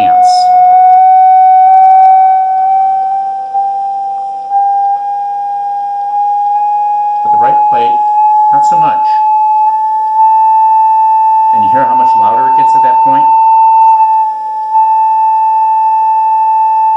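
A loud, steady high tone hums and slowly rises in pitch.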